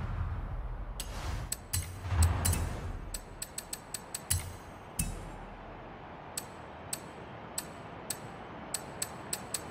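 Menu clicks tick at intervals.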